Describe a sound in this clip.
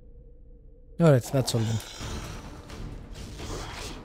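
A magic spell bursts with a loud, crackling whoosh.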